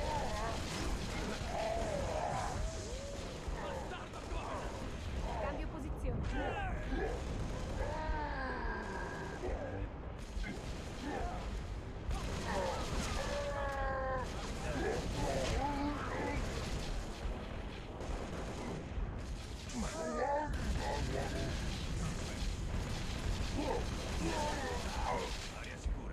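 An automatic rifle fires.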